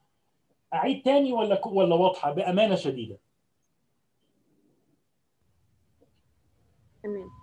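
A man lectures calmly over an online call.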